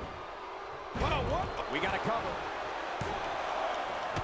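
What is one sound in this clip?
A heavy body thuds onto a wrestling ring mat.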